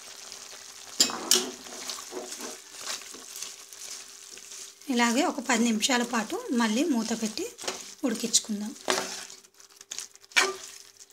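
A spoon stirs and scrapes through food in a pan.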